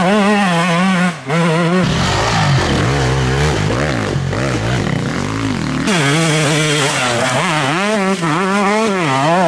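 A dirt bike engine revs hard and whines up and down in pitch.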